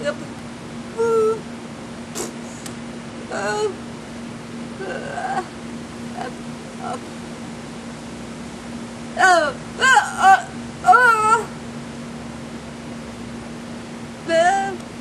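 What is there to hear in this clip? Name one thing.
A woman speaks expressively close by, in short bursts with pauses.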